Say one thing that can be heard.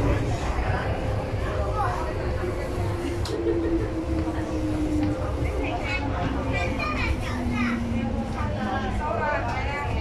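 Train brakes whine, sliding down in pitch.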